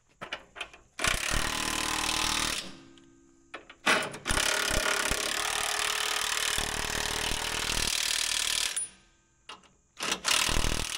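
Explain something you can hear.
An impact wrench whirs and rattles in loud bursts.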